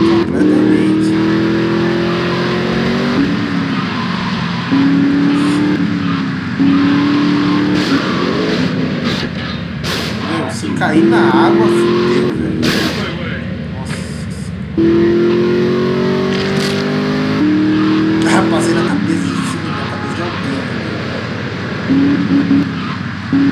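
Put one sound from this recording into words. A vehicle engine drones loudly, its pitch rising as it speeds up and dropping between gears.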